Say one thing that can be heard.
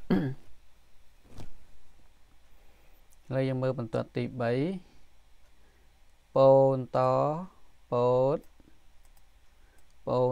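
An elderly man speaks slowly and clearly through a microphone, pausing between short words.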